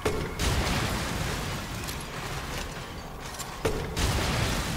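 Gunshots fire with loud bangs in a reverberant corridor.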